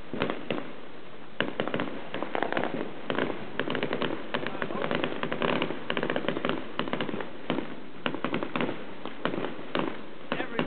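Fireworks crackle and bang in rapid bursts, some distance off.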